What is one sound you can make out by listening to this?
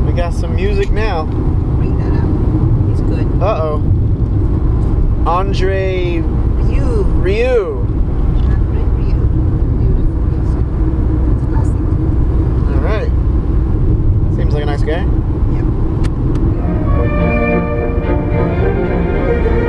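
A car engine hums steadily with road rumble from inside the cabin.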